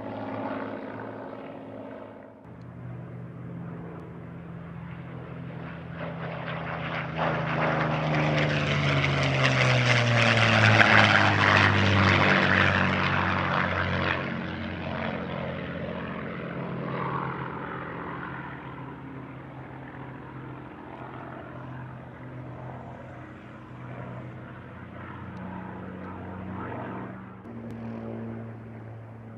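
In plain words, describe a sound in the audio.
A propeller plane's engine drones overhead, roaring louder as it passes close and then fading away.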